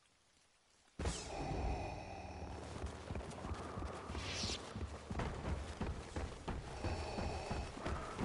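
Heavy footsteps and game action sounds play with a low hum.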